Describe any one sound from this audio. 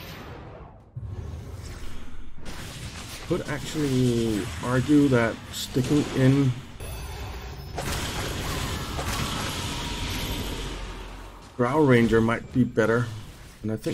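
Game battle effects clash, whoosh and crackle.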